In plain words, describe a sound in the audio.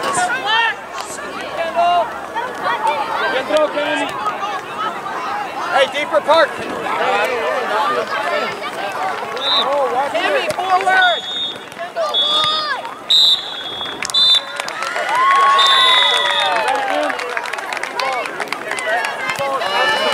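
A crowd of children and adults shouts and cheers outdoors.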